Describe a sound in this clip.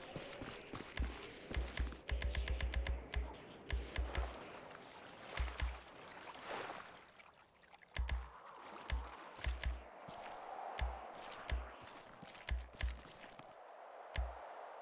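Menu clicks tick quickly, each with a soft thump.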